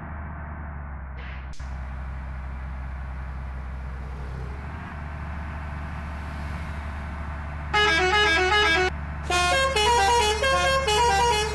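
A bus engine drones steadily at speed.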